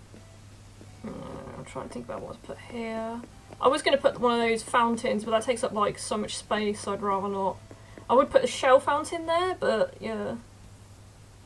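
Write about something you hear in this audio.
A young woman talks with animation into a nearby microphone.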